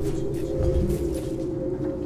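Electric sparks crackle and fizz.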